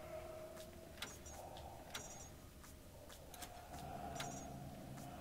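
Electrical switches click as they are flipped one by one.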